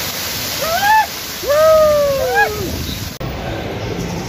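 Water splashes and pours down heavily.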